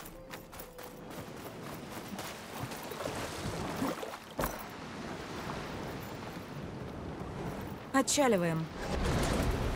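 Waves wash gently onto a shore.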